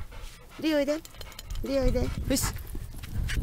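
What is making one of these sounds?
A dog whines in short, high bursts close by.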